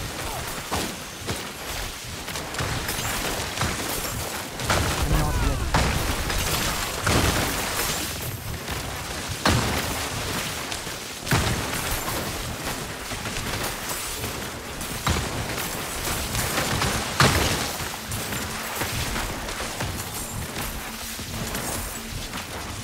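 Game spells crackle and boom as creatures are struck.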